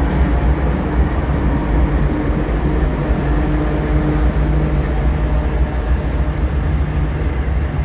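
Freight cars clatter and squeal over the rails.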